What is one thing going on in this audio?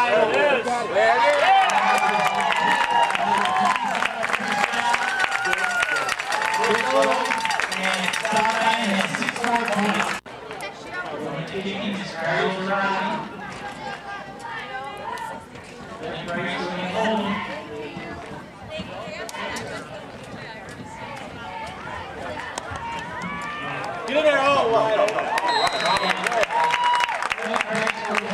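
A crowd of young men on the sideline shouts and cheers loudly outdoors.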